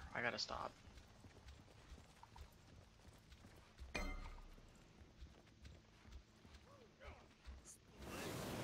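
Heavy footsteps thud steadily.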